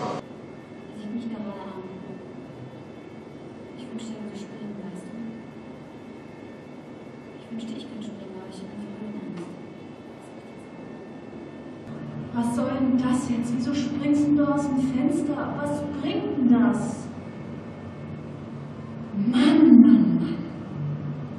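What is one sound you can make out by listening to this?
A woman speaks with emotion, heard through a loudspeaker.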